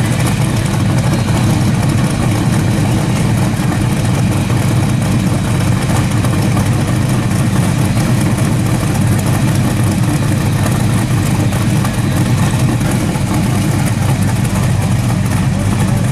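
A car engine idles with a deep, steady rumble close by.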